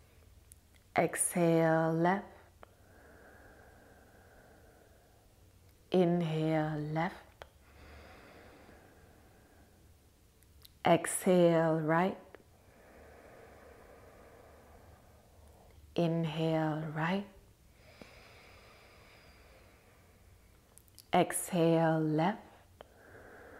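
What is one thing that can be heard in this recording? A young woman hums a long low note several times, close by.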